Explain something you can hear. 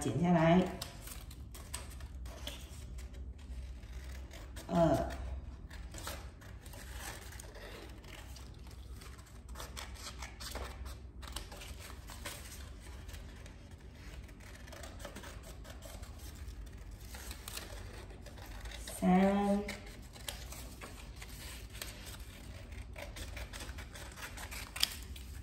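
Stiff paper rustles and crinkles as it is handled.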